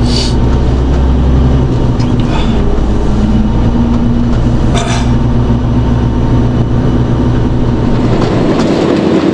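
A heavy diesel truck engine idles with a low hum.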